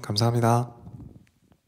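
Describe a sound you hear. A young man laughs briefly close by.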